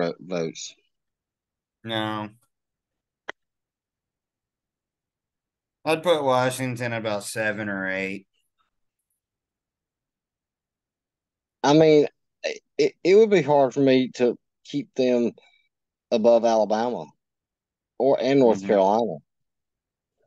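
Men talk by turns over an online call, in short bursts with pauses.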